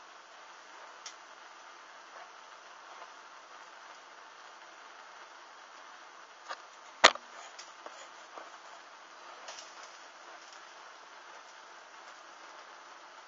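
A small flame crackles softly as it burns.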